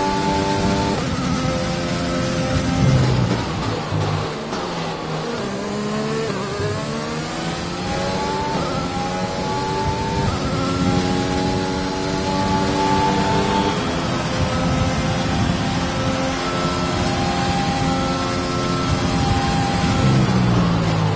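A racing car engine screams at high revs, dropping in pitch as it brakes and rising again through quick gear changes.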